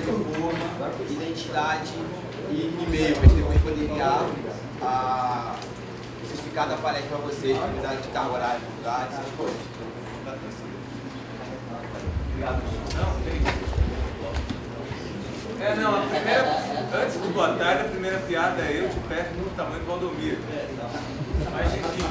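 A man speaks calmly to an audience through a microphone in a room with some echo.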